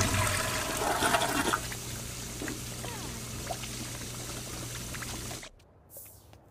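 Water runs and splashes in a sink.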